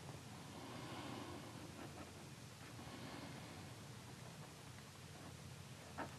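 A felt-tip marker scratches softly across paper.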